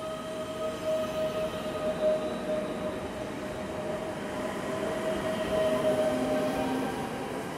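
A passenger train rolls past with a steady rumble and a humming electric whine.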